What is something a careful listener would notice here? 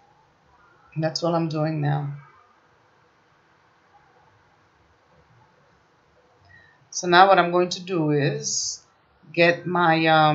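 A woman talks calmly and close to a microphone, in short bursts.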